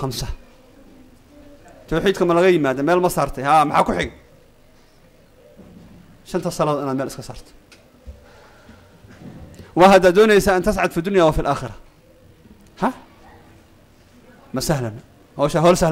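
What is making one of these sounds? A middle-aged man speaks calmly into a microphone in bursts with pauses.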